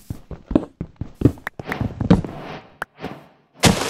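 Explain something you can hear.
A pickaxe chips at stone blocks with quick, repeated knocks.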